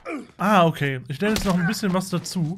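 A heavy blow lands with a thud.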